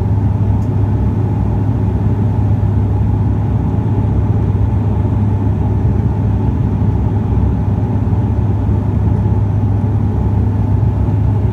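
Jet engines roar steadily, heard from inside an aircraft cabin.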